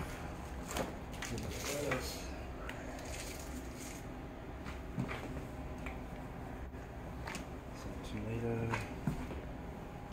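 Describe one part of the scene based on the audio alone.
Light knocks and clicks sound as items are handled on a counter.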